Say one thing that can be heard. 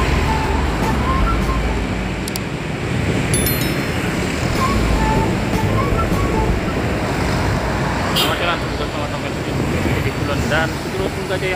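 A bus engine rumbles past on a street.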